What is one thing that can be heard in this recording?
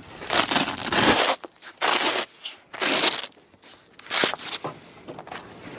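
Heavy fabric rustles and flaps close by.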